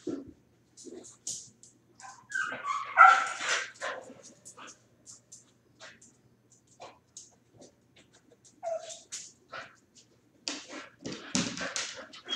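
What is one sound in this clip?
A dog's claws click and scrape on a hard floor.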